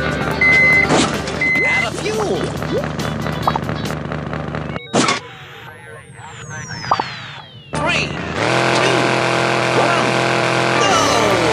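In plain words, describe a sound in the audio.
A cartoonish vehicle engine revs and hums.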